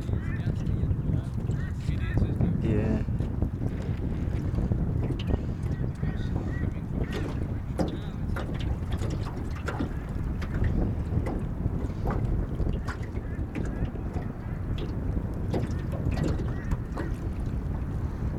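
Small waves lap and splash against a boat hull.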